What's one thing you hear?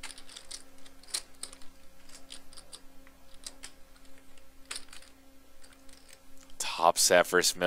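Poker chips click and clatter as they are shuffled in a hand.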